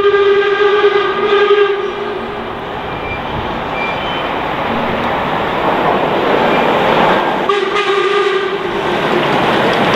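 A steam locomotive's whistle blows loudly.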